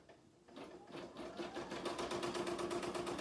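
An embroidery machine stitches with a rapid, steady whirring rattle.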